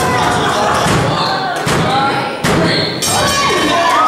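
A referee slaps the mat with his hand.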